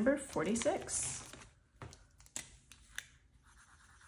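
Plastic sleeves crinkle and rustle as binder pages are flipped.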